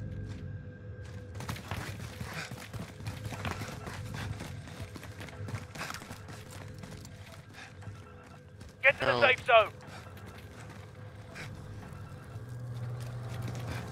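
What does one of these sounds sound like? Footsteps patter quickly on a hard floor.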